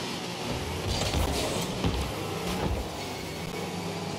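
A ball thuds as a car hits it.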